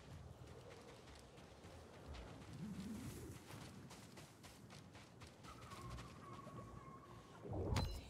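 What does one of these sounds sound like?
Footsteps run across sand.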